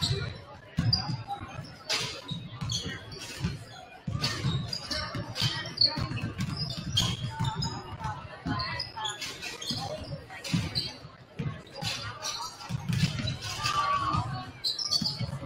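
Basketballs bounce on a wooden court in a large echoing hall.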